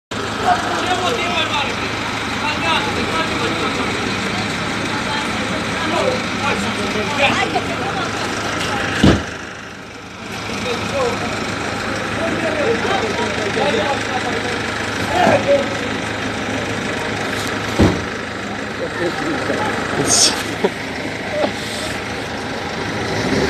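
Several men talk in agitated voices nearby outdoors.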